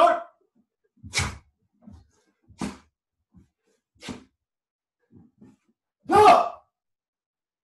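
A man lets out short, sharp shouts every second or two.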